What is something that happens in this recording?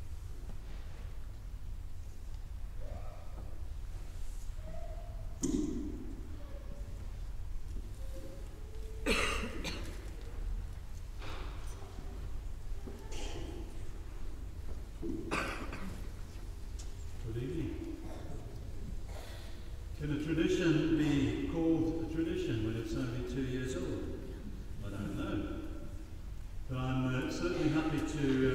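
A choir of young girls sings softly in a large echoing hall.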